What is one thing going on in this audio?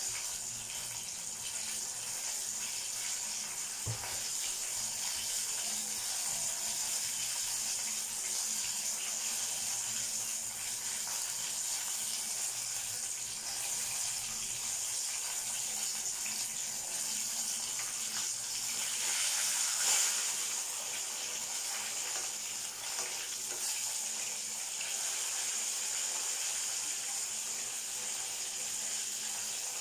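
Oil bubbles and sizzles steadily in a pot.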